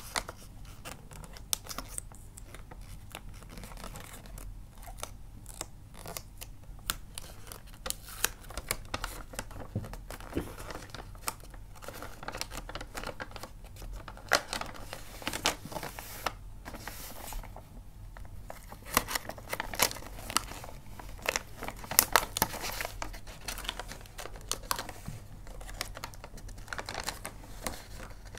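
Paper rustles and crinkles close by as hands fold it.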